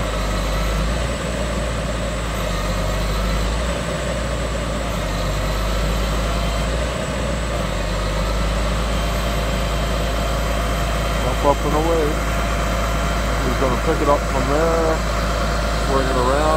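A hydraulic crane hums as it lifts a steel shipping container.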